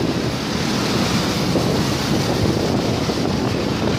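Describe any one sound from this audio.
Motorcycle engines buzz past close by.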